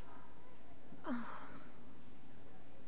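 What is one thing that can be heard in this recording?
A young woman sighs softly.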